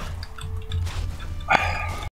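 A weapon strikes a creature with sharp clashing hits.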